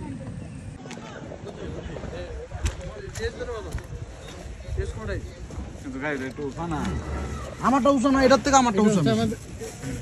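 Men talk with animation nearby, outdoors.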